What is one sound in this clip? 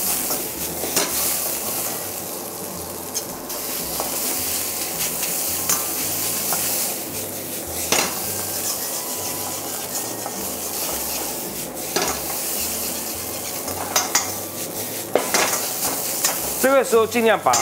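A metal ladle scrapes and clanks against a wok.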